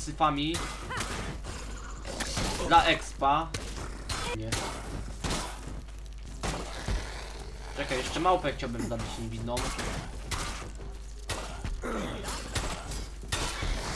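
A sword swings and strikes with sharp hits.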